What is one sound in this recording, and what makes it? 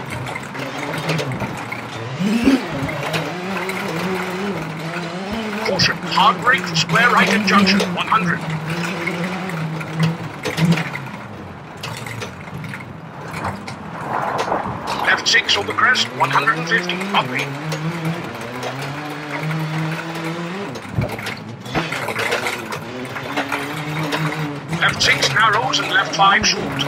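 A rally car engine roars, revving up and down as gears change.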